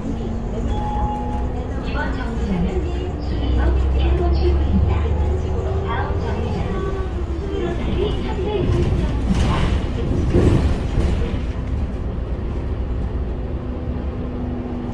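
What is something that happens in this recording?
Bus tyres roll on the road.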